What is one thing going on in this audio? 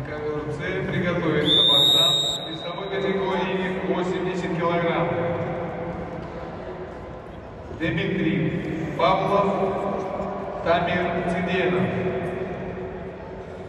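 A man shouts loudly in a large echoing hall.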